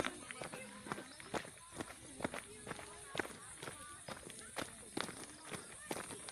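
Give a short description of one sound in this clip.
Footsteps crunch on a gravel path at a brisk walking pace.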